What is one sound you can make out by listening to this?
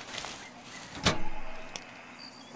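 A metal cabinet door clanks open.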